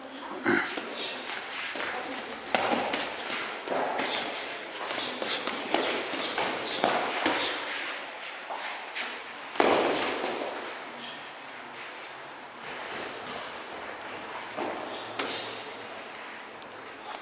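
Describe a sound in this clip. Gloved punches and kicks thud against pads and arms.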